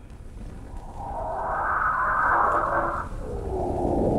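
A metal blade scrapes as it slides free.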